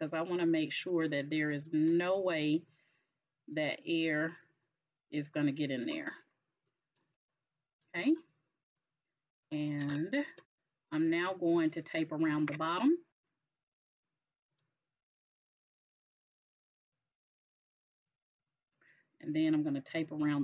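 A woman talks calmly and close to a microphone, pausing now and then.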